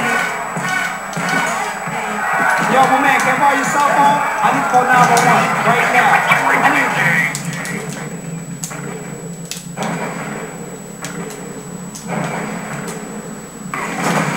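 Music and game sound effects play from a television speaker.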